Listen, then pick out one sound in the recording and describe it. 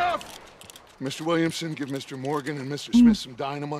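A man speaks calmly, giving orders.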